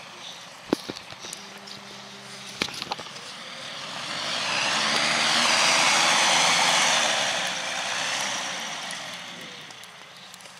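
A hovercraft's engine hums steadily underneath the roar.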